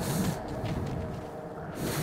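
Rain patters lightly outdoors.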